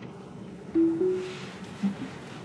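A car's touchscreen chimes with a short two-note tone.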